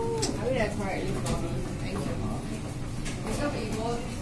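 A finger presses an elevator button with a soft click.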